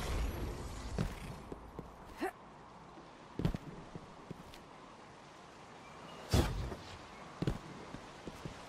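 Heavy footsteps land with dull thuds on stone.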